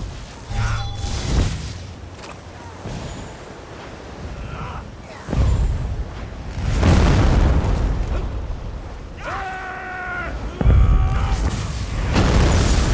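Magic spells crackle and burst in a fight.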